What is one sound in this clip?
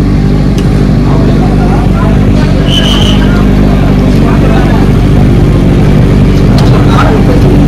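Motorcycle engines idle and rumble loudly nearby.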